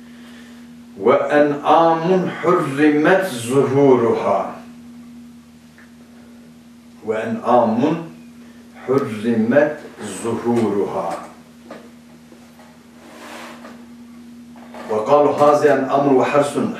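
A middle-aged man reads aloud calmly and clearly into a microphone, close by.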